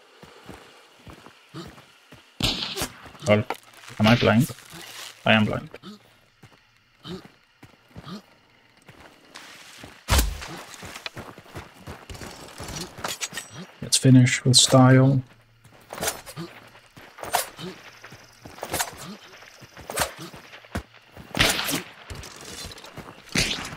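Footsteps rustle through undergrowth.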